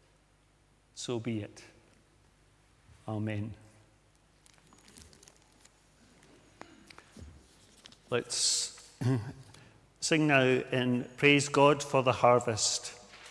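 An elderly man speaks calmly in a slightly echoing hall.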